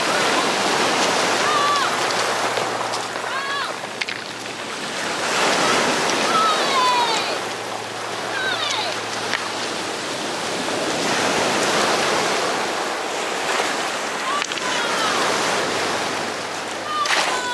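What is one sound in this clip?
Pebbles crunch and clatter under small feet.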